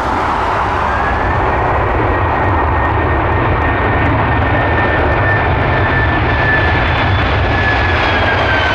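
Jet engines whine at a high, steady pitch as an airliner rolls past.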